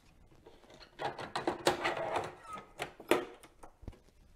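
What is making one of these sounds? A plastic cartridge scrapes and clicks as it slides into a game console.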